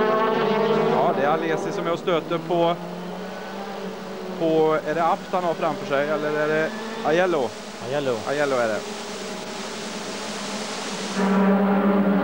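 A racing car engine revs up and down sharply through gear changes.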